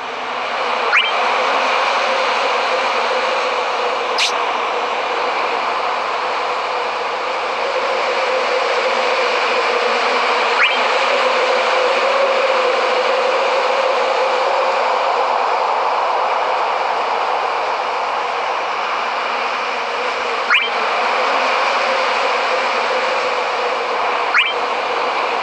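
Short menu chimes sound now and then as options are tapped.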